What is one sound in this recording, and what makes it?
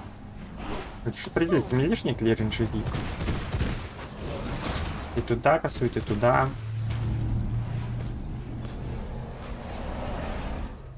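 Spells and blows crackle and thud in a fight.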